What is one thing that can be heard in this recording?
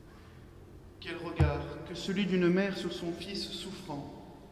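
A man chants slowly into a microphone, echoing in a large hall.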